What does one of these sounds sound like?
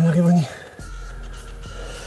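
Wasps buzz softly around a nest.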